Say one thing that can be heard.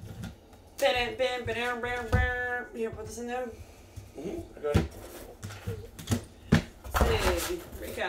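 Plastic card cases click and clatter against each other.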